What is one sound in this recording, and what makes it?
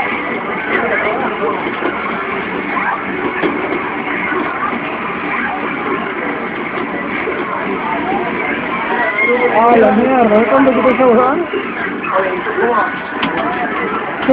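Fast video game music plays through a loudspeaker.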